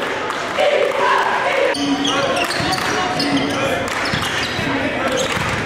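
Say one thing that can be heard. A crowd cheers and chants loudly in a large echoing gym.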